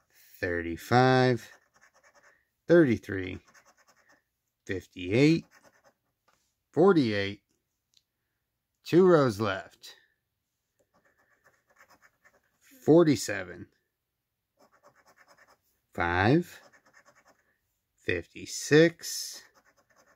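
A coin scratches quickly across a lottery ticket.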